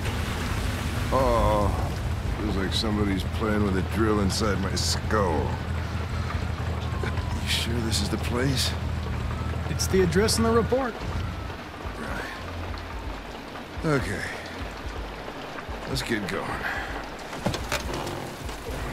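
An elderly man groans and speaks wearily, close by.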